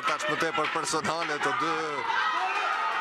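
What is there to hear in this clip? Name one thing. A man in the crowd shouts loudly.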